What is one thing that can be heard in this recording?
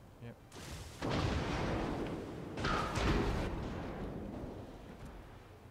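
Heavy ship guns fire with deep, booming blasts that roll away slowly.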